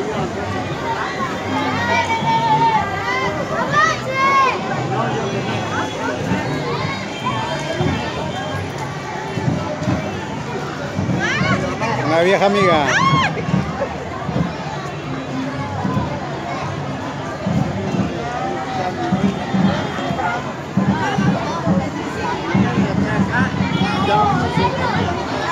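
A crowd of children and adults chatters and calls out outdoors.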